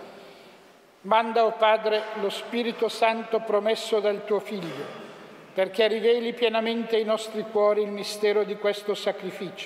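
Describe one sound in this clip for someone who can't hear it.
An elderly man chants a prayer through a microphone in a large echoing hall.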